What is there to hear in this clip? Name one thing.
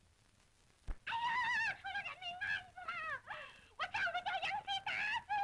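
A young woman cries out in distress, sobbing as she speaks.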